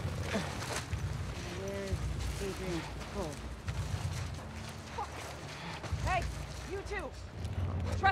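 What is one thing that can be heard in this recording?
Grass and leaves rustle as someone crawls through them.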